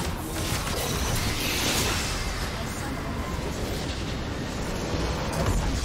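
Game spell effects crackle and boom during a battle.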